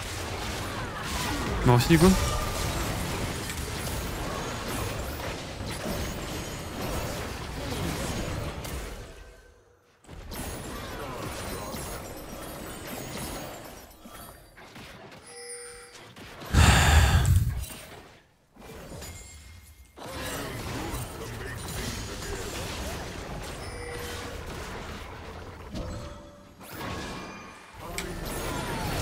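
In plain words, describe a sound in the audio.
Game spell effects whoosh and blast in quick bursts.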